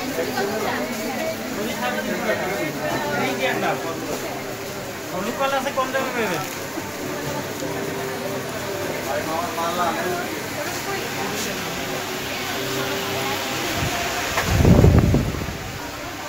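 People chatter nearby in a crowd.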